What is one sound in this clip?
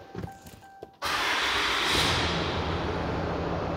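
A diesel engine starts up with a roar.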